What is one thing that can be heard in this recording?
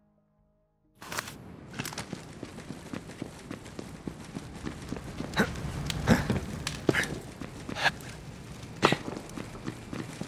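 Footsteps tread steadily on hard ground.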